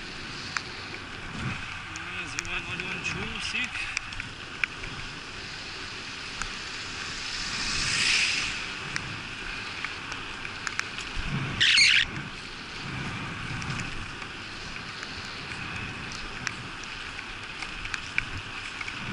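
Raindrops tap and patter.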